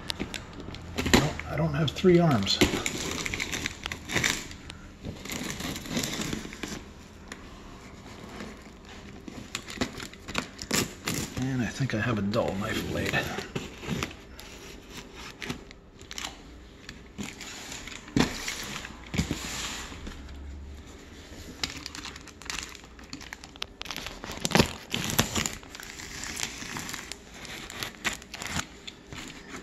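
A utility knife blade scrapes and slices through packing tape on cardboard.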